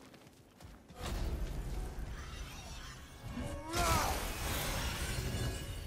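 Wind howls in a snowstorm.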